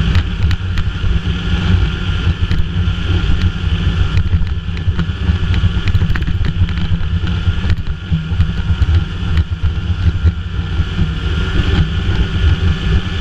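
A snowmobile's track rumbles over packed snow.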